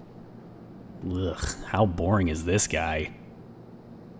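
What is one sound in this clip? A young man speaks briefly and casually, close by.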